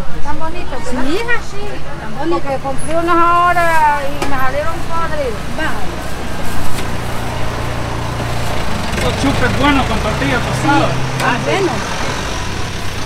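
A woman speaks nearby in a lively, singsong voice.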